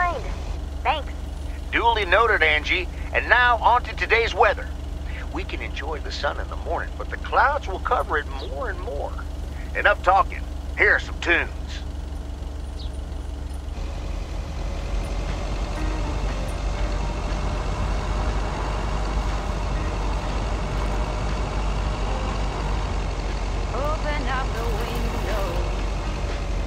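A van engine hums steadily as the van drives along.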